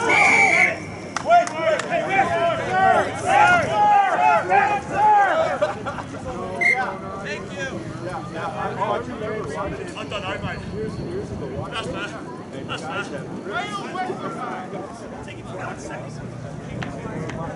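Spectators on the sideline shout and cheer loudly outdoors.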